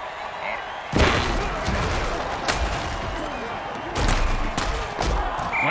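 Heavy bodies collide with loud thuds.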